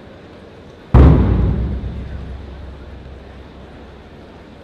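A thud rings out with a long echo, as in a large hall.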